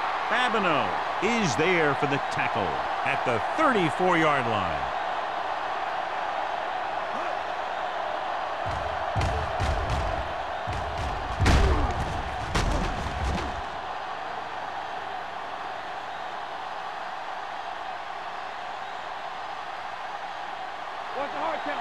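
A stadium crowd roars.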